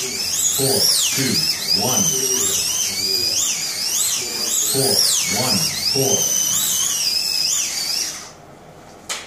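Small electric model cars whine around a track, their pitch rising and falling as they speed up and slow down.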